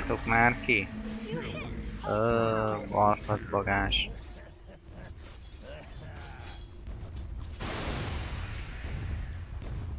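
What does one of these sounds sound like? Magic spells whoosh and crackle as game characters fight.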